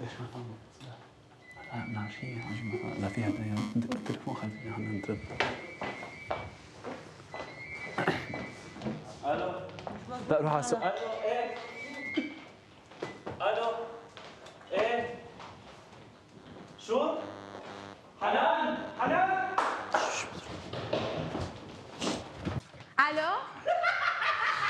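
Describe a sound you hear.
Footsteps tap on a wooden floor.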